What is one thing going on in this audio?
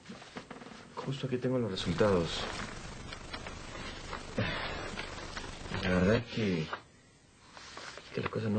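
A man talks calmly in reply.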